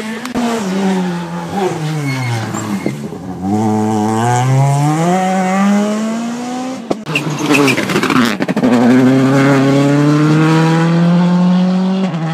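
A rally car engine roars and revs, its pitch climbing and dropping as it shifts gears.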